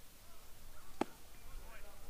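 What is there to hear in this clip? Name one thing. A baseball smacks sharply into a catcher's mitt.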